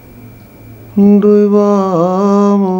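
A man sings a long, loud held note close by.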